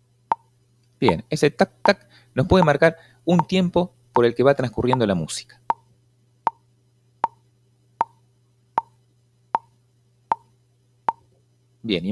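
A bongo drum taps a steady, even beat.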